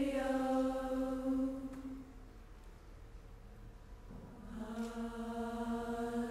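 A choir of young women sings long held notes together in a hall.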